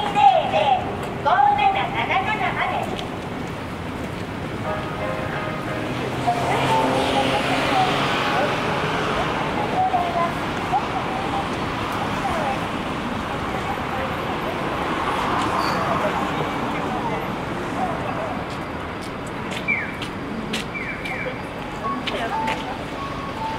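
Traffic hums along a busy city street outdoors.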